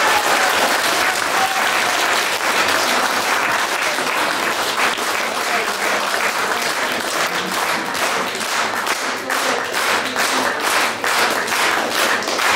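An audience applauds steadily in an echoing hall.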